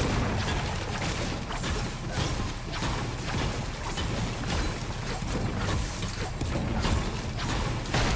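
A pickaxe strikes stone with sharp clanks.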